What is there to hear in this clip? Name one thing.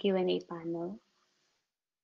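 A young woman speaks briefly through an online call microphone.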